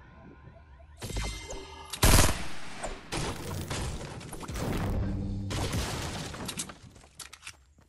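A pickaxe strikes a wooden wall with hard, loud thuds.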